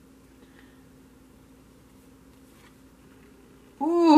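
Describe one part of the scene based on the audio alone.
A playing card slides softly across a cloth-covered table.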